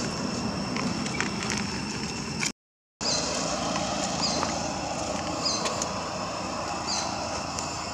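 A monkey's feet patter and rustle over dry leaves and gravel.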